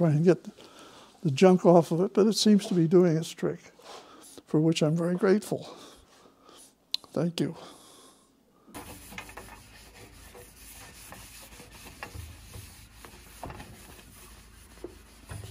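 A cloth rubs along a metal pipe.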